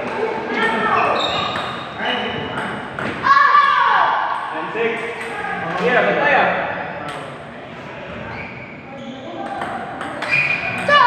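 Children shout and call out during play.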